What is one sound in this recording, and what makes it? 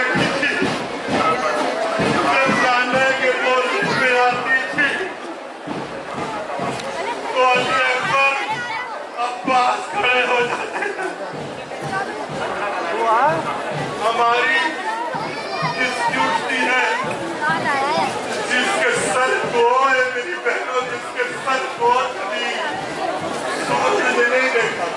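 A large crowd murmurs and chatters all around outdoors.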